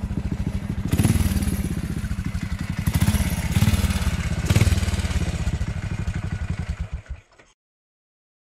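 Motorcycle engines rumble nearby.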